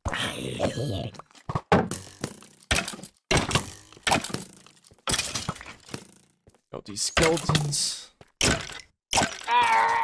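Sharp hits land on creatures in quick bursts.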